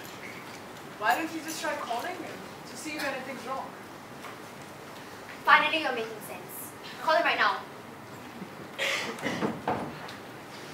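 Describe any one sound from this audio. Young women talk on a stage, heard from a distance in a large hall.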